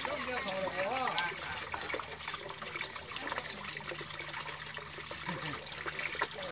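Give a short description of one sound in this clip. Water pours from a hose and splashes steadily into a tub of water.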